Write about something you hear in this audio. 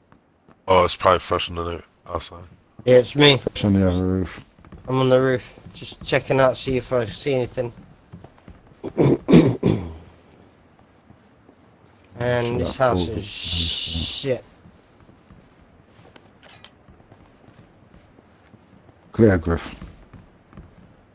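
A young man talks with animation into a close microphone.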